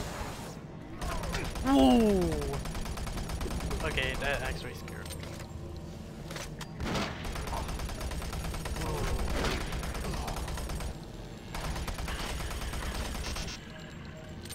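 A shotgun fires repeatedly in bursts.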